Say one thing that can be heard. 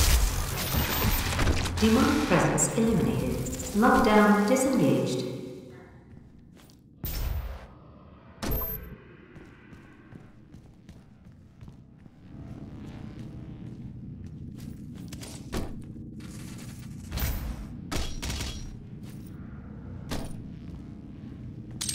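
Heavy footsteps thud on metal floors.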